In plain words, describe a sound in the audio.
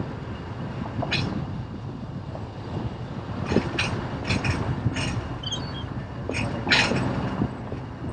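Tyres roll on smooth pavement.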